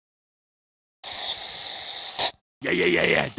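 Icing sprays from a tube with a steady hiss.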